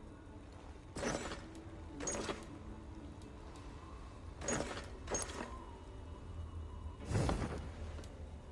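Soft menu swooshes sound as items are selected.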